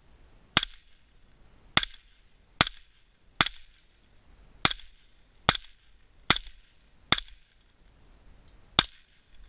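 A rifle fires single shots at a steady pace outdoors, each crack echoing off the hills.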